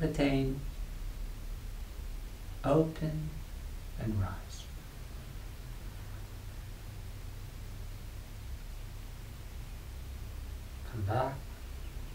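A man speaks calmly and slowly, close by, with long pauses.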